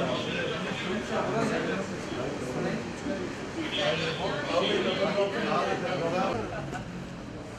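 Men talk nearby in overlapping voices.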